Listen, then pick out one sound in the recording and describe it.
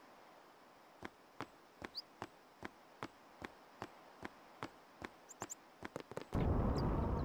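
Footsteps patter quickly on a hard stone floor.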